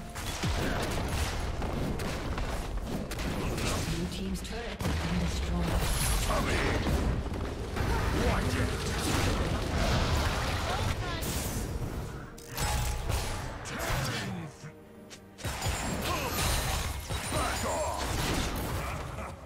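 Game combat sound effects of magic zaps, blasts and clashing weapons play in quick succession.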